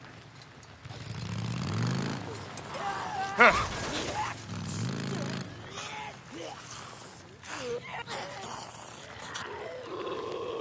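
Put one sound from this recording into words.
A motorcycle engine revs up and idles.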